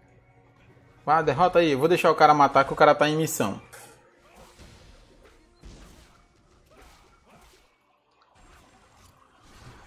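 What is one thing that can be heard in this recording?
Magic blasts burst in a fight.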